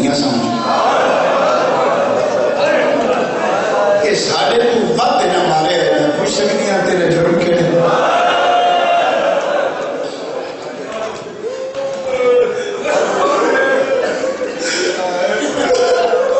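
A man speaks with passion through a microphone and loudspeakers, his voice echoing.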